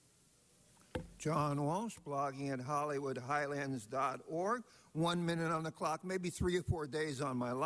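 A man speaks at length into a microphone.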